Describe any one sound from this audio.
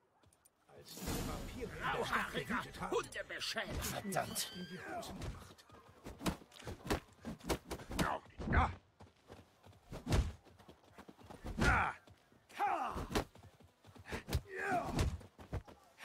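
Men grunt and shout while brawling with fists.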